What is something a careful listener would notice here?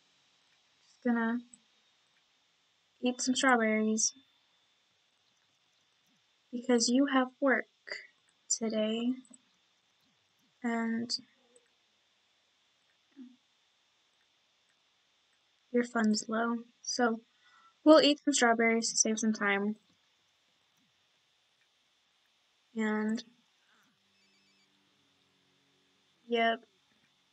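A young woman talks casually into a close microphone, in short bursts with pauses.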